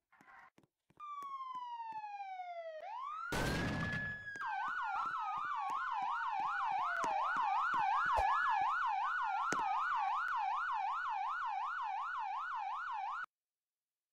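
A siren wails up and down, rising and falling quickly.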